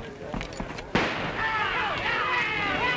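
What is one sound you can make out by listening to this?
A crowd of men shouts and cheers.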